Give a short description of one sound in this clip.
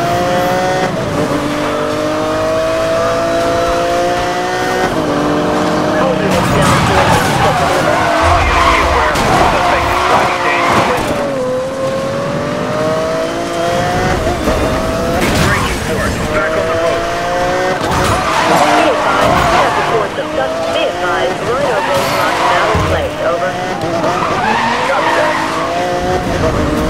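A sports car engine roars and shifts gears as it races.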